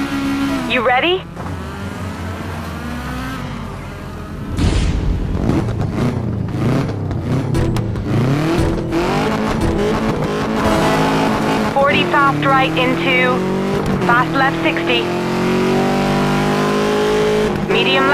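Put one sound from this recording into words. Tyres crunch and spray over loose gravel.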